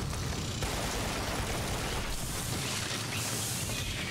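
Machine gun fire rattles rapidly.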